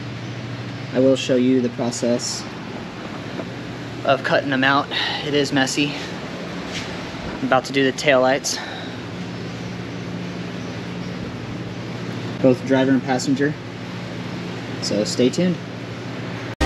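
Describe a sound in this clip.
A man speaks calmly and close up, as if to the listener.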